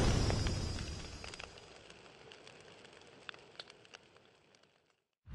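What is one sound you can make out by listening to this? Embers crackle and pop softly.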